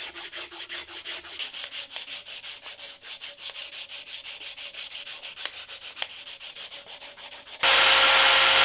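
Sandpaper rubs rapidly back and forth over wood.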